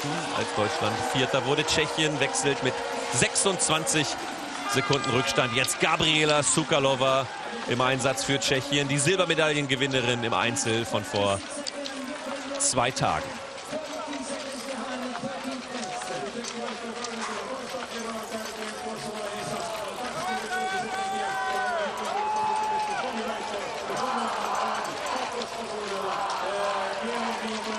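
A crowd cheers loudly outdoors.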